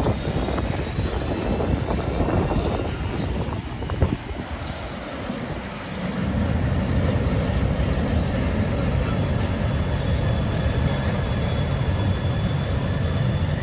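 A freight train rumbles along the tracks with a steady low roar.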